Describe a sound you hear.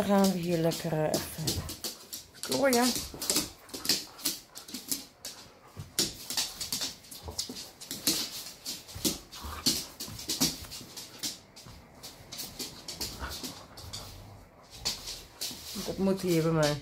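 Dogs scuffle and play.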